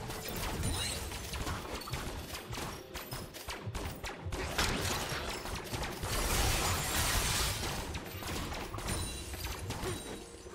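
Video game spell effects whoosh and clash during a battle.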